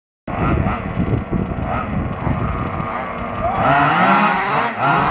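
Small electric motors of toy racing cars whine and rev as the cars speed around a track.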